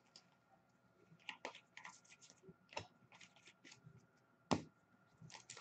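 Cards shuffle and click against each other.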